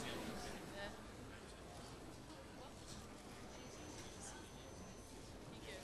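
An older woman speaks through a microphone.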